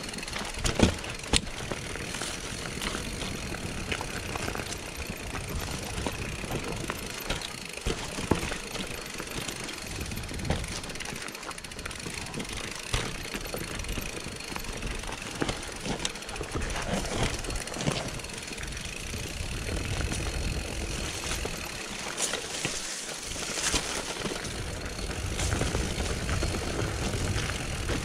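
A bike rattles and clacks sharply over bumps and roots.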